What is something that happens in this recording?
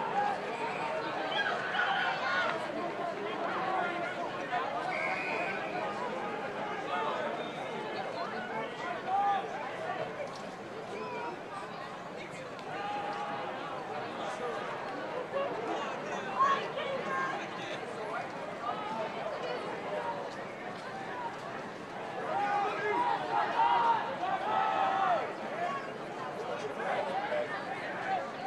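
Rugby players shout to each other outdoors.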